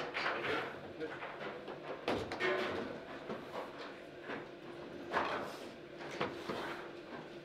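A foosball ball knocks sharply against plastic players and the table walls.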